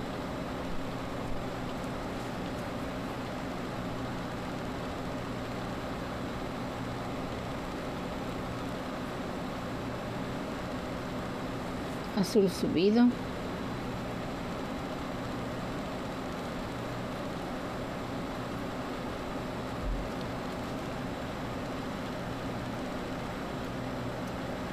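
Small glass beads click softly as thread is pulled through them.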